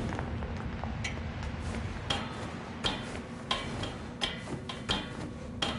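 Footsteps clank on a metal ladder in a rhythm.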